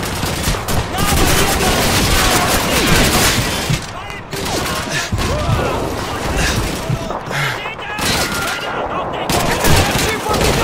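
Gunfire rattles in rapid bursts nearby.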